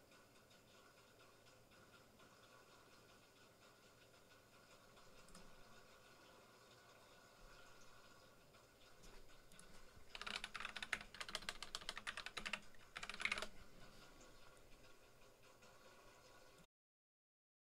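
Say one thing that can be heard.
Video game music plays steadily.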